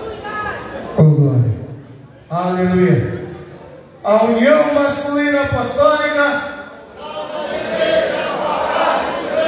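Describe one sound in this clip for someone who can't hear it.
A men's choir sings loudly together in a large echoing hall.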